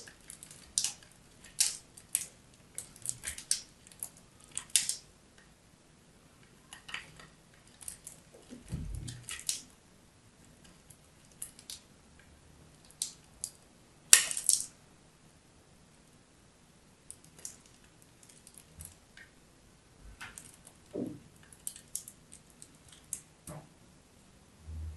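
Fingernails tap and scrape on a small metal grater.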